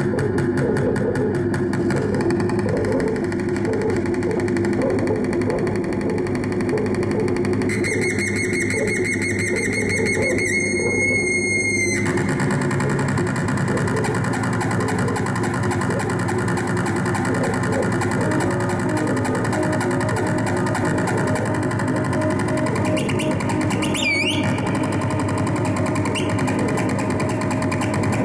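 Loud electronic music plays from synthesizers, with droning and warbling tones.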